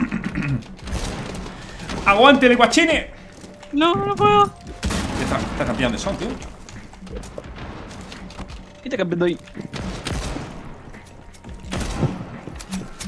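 A sniper rifle fires sharp, loud shots.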